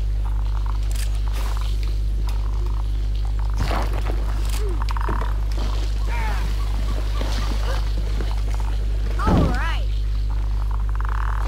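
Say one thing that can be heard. Short cartoon chirps, whooshes and clicks play as a small character hops about.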